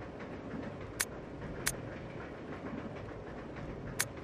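Short, bright menu blips sound a few times.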